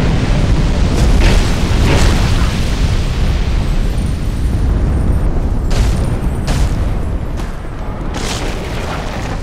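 A sword swishes through the air in quick slashes.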